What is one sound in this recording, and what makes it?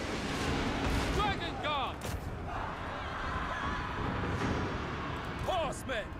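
A large battle rumbles with clashing weapons.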